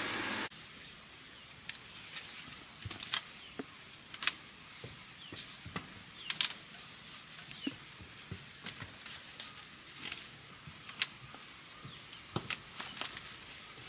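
Bamboo sticks knock and clack together outdoors.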